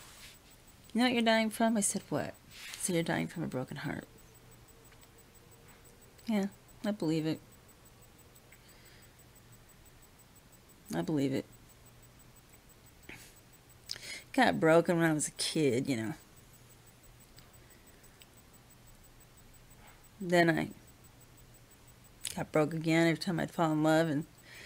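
A middle-aged woman talks close to the microphone in short bursts, with pauses between them.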